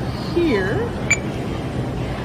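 A handheld scanner beeps once.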